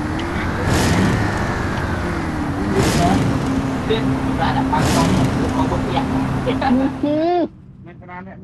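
A car engine roars as a car drives fast.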